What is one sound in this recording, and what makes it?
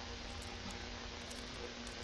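A lock pick scrapes and clicks inside a metal lock.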